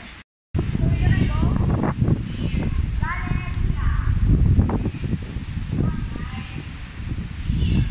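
A young girl calls out excitedly nearby.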